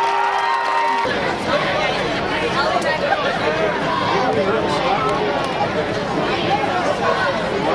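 A crowd of people chatters and shouts outdoors.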